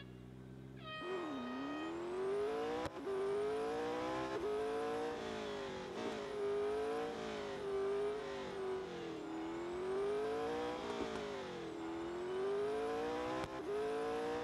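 A racing car engine roars and revs up and down as the car accelerates and shifts gears.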